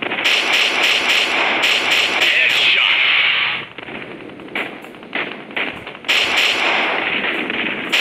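Gunshots ring out repeatedly.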